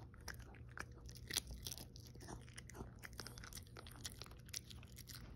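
A small dog smacks its lips and chews with wet clicks close by.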